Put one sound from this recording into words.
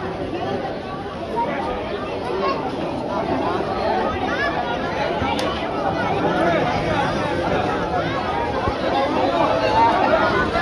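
A large crowd of men talks and shouts all around, close by.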